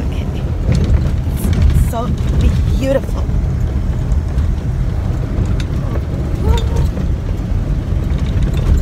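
A vehicle engine rumbles steadily inside a moving car.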